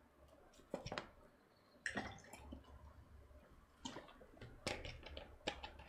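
A drink can clicks and clinks as it is handled close by.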